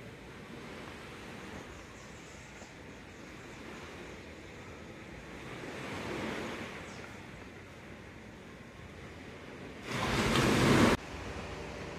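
Small waves wash softly onto a shore in the distance.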